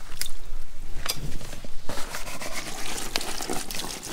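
Water pours onto a leaf.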